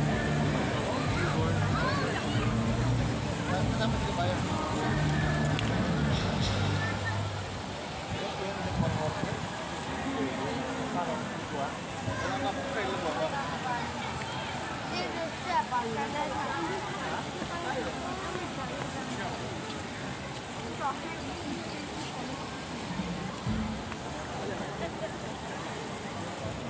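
Water splashes softly in a fountain.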